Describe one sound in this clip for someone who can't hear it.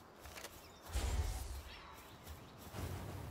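A large creature's attack bursts with a deep rumbling blast.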